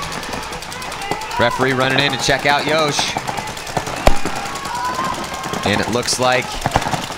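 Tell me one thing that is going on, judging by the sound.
Paintball guns fire in quick, sharp pops.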